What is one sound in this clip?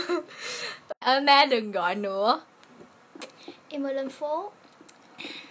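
A young girl sings softly close by.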